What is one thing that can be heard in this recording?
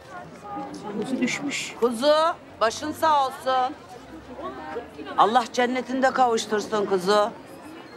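A young woman speaks loudly and sharply nearby.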